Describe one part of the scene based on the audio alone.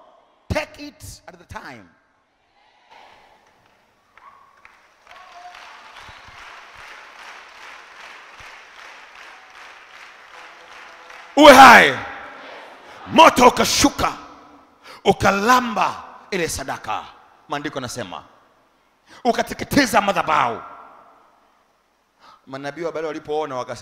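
A man preaches forcefully through a microphone in a large echoing hall.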